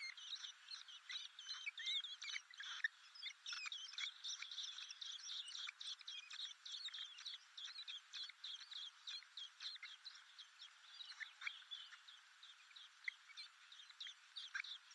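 Blackbird nestlings beg with high, rapid cheeping.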